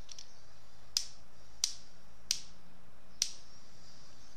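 A revolver's cylinder clicks several times.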